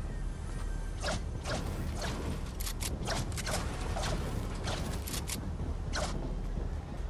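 A pickaxe strikes metal again and again.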